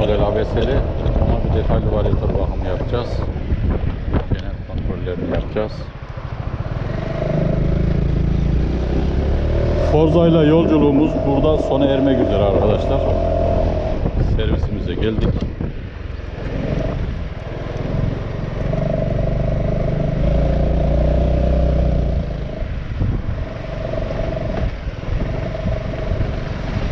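A motor scooter engine hums and revs steadily while riding.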